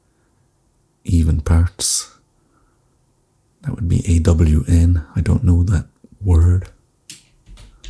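A man speaks calmly and closely into a microphone, pausing between phrases.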